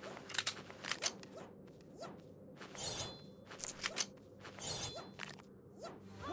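Small electronic gunshots pop in quick bursts.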